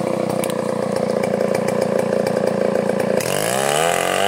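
A chainsaw engine runs with a loud buzz.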